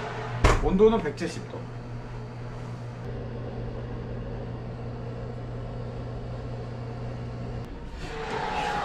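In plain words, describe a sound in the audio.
An oven hums steadily, then stops.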